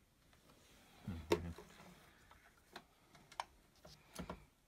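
A sewing machine's handwheel clicks as it is turned by hand.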